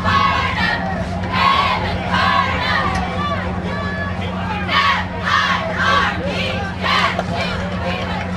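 A crowd shouts and cheers outdoors.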